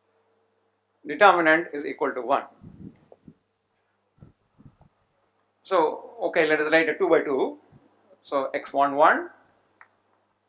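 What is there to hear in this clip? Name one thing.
An elderly man speaks calmly, lecturing.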